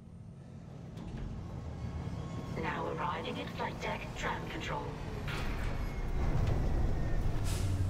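A tram rumbles in and grows louder.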